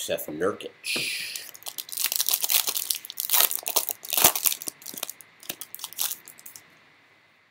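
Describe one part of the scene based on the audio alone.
A foil card pack crinkles and tears as it is opened.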